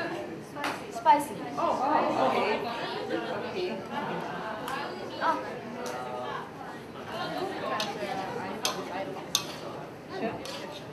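A spatula scrapes and clinks against a metal wok.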